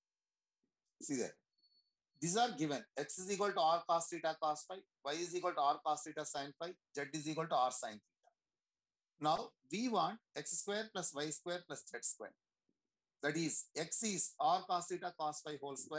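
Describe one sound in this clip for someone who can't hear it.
A man explains calmly through a microphone on an online call.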